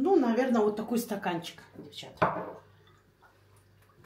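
A mug knocks down onto a counter.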